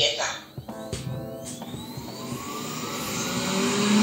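A robot vacuum's motor starts up and whirs, rising in pitch.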